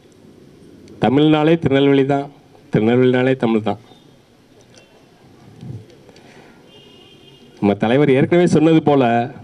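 A man speaks into a microphone over a loudspeaker, with pauses, heard outdoors.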